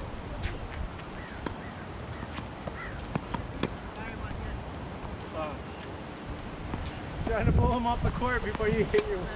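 A tennis ball bounces on a hard court with sharp thuds.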